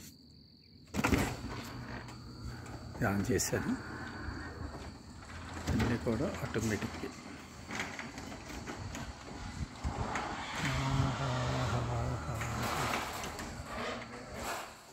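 A garage door opener hums and rattles as a door rolls up.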